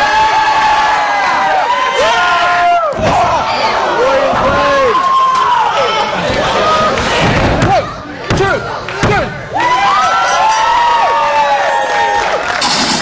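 A small crowd shouts and cheers in a large echoing hall.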